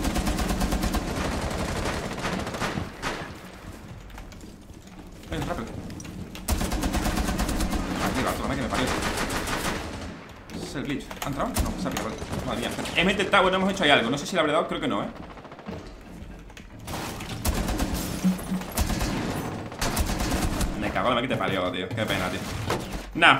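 Gunfire crackles in a video game.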